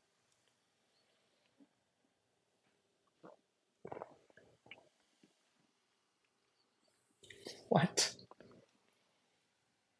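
A man sips and slurps a drink close to a microphone.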